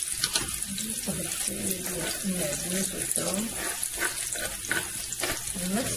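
A knife scrapes chopped herbs off a board into a bowl.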